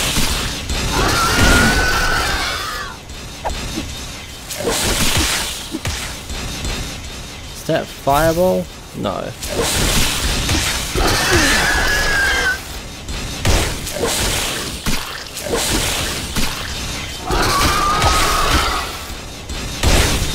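A creature lets out harsh, hissing screeches again and again.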